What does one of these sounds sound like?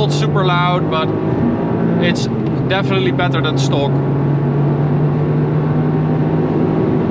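Wind and tyres rush loudly against a fast-moving car.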